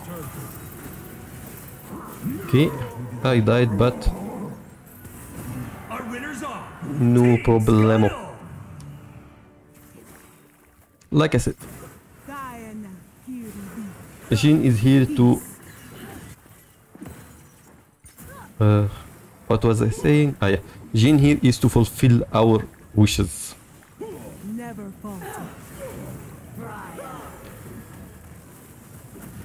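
Spells and attacks burst and clash in a game.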